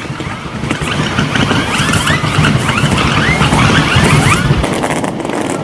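Firework rockets whistle shrilly as they rise.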